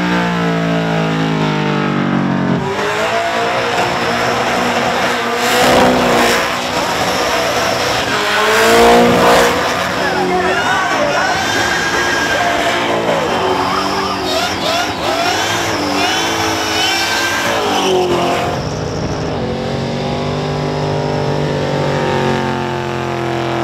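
Tyres screech and squeal as they spin.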